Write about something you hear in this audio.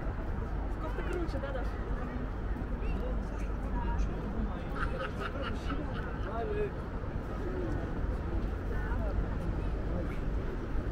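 Men talk in low voices a short way off.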